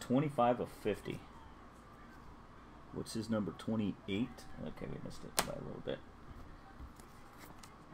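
A plastic card case clicks and rattles in hands.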